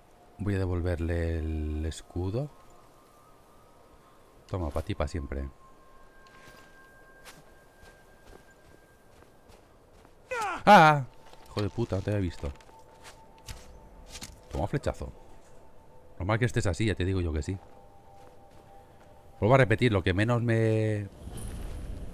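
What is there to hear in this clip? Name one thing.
A man talks animatedly into a close microphone, in short bursts.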